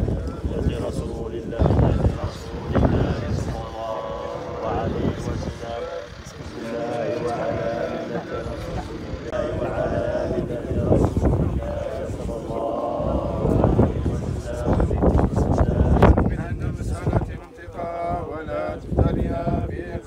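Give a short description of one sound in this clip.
A crowd of men talks and murmurs in low voices outdoors.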